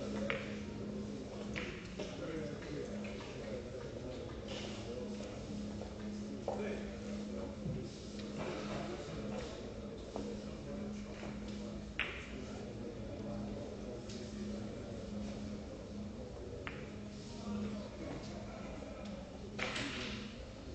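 A cue tip strikes a billiard ball with a sharp tap.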